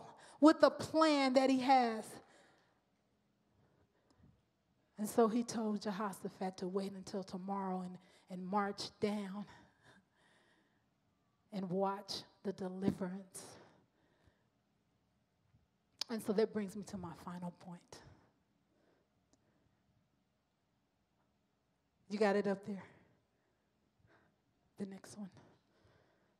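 A woman speaks with feeling through a microphone, in bursts with long pauses, heard over loudspeakers.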